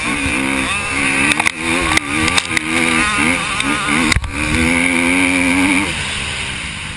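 A motorcycle engine revs loudly up close, rising and falling in pitch.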